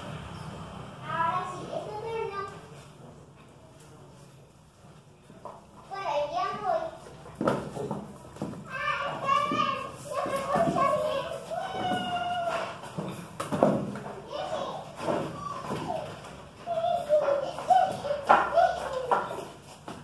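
A puppy yelps and whines in high bursts.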